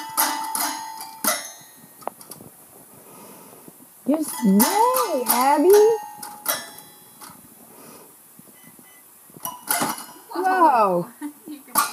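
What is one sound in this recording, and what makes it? A toy piano plays plinking notes.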